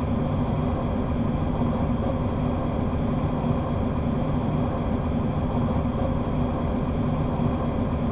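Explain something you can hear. A train's electric motors hum steadily as it runs along the track.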